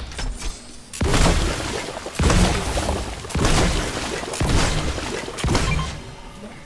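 A magical burst crackles and whooshes repeatedly.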